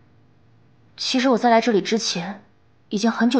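A young woman speaks quietly and hesitantly up close.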